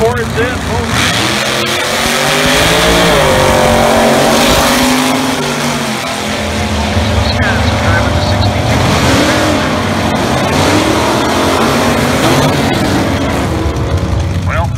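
Race car engines roar and rev loudly as cars launch down a track.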